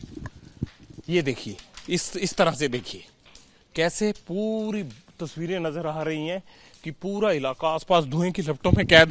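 A man speaks with animation into a microphone outdoors.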